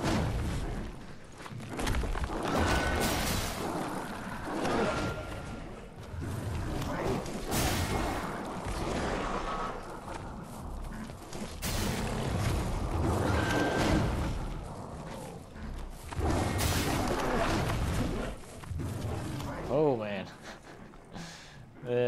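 Swords swing and clash in a fight.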